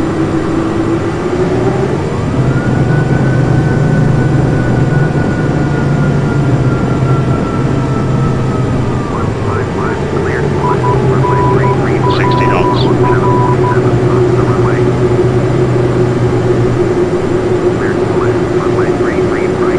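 Tyres rumble and thump over the runway.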